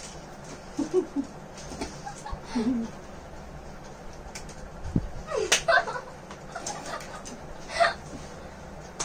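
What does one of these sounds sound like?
A young woman laughs and talks nearby.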